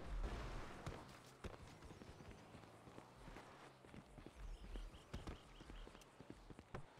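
Footsteps thud on dry ground as a man runs.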